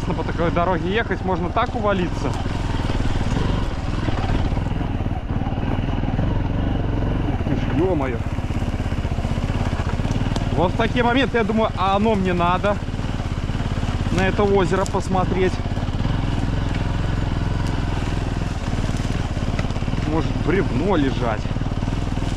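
A motorcycle engine revs up and down repeatedly.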